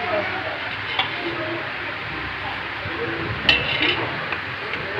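A metal spoon clinks against steel pots and bowls.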